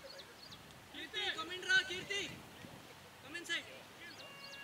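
Several men on a field shout loudly at a distance.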